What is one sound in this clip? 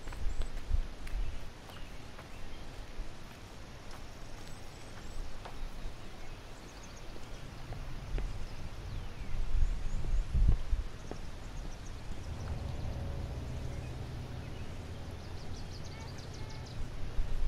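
Water laps gently against rocks.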